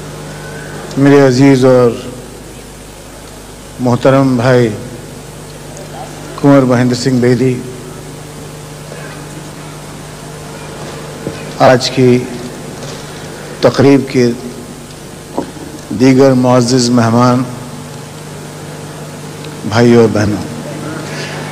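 A middle-aged man speaks slowly and deliberately into a microphone, in short phrases with long pauses.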